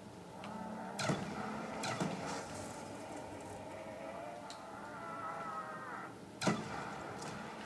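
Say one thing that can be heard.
Gunshots boom in a video game.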